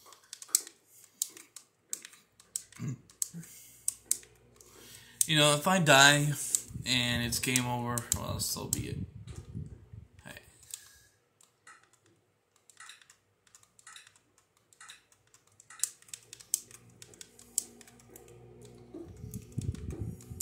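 Short clicking game sound effects play through a television speaker.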